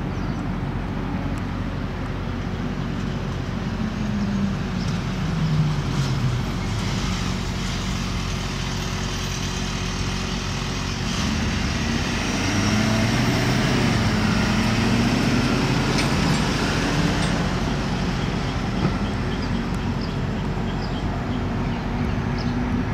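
A city bus engine rumbles as the bus slowly approaches.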